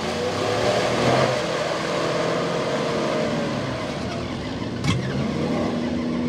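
Mud splashes and sprays from spinning tyres.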